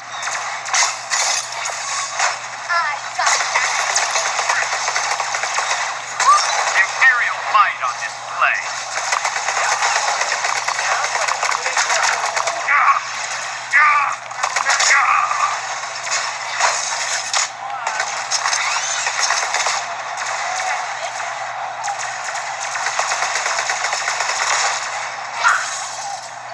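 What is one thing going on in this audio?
Rapid gunfire and blasts from a video game play through a small speaker.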